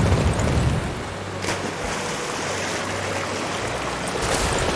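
Water splashes as a horse wades through it.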